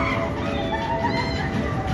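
A roller coaster rumbles along its track in the distance.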